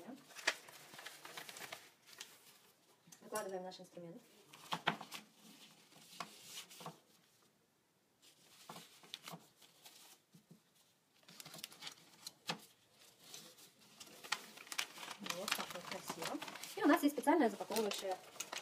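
Plastic pouches crinkle and rustle as they are handled.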